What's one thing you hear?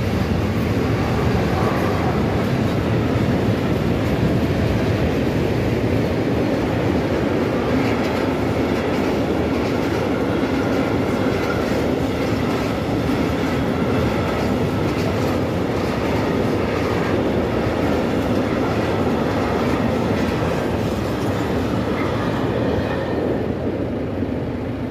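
A tractor engine idles close by with a low steady chug.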